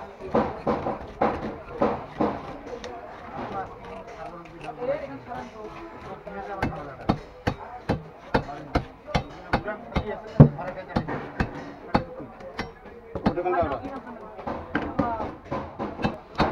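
A knife chops repeatedly on a wooden board.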